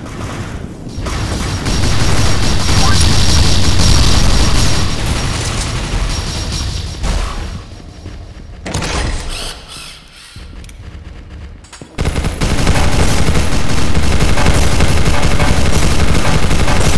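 Guns fire in rapid bursts in a game.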